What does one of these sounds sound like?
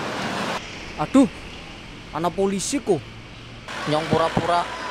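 A young man speaks with surprise, close by.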